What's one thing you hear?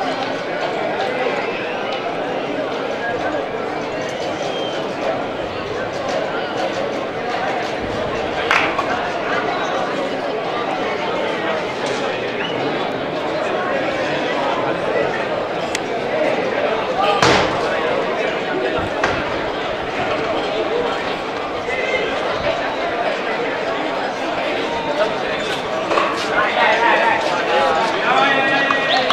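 A crowd of people chatters outdoors in the street.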